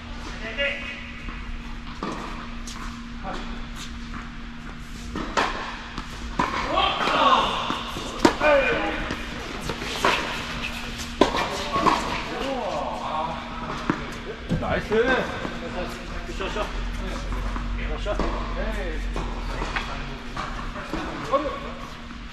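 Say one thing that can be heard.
Tennis rackets strike a ball back and forth, echoing in a large hall.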